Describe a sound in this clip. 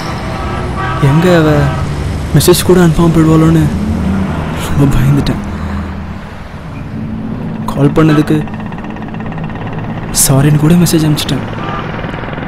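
A young man talks into a phone nearby.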